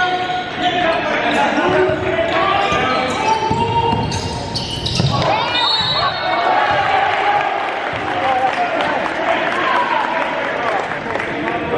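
Spectators murmur and call out in the background.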